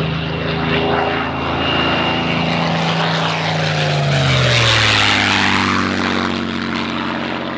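A propeller plane roars past overhead, its engine pitch dropping as it goes by.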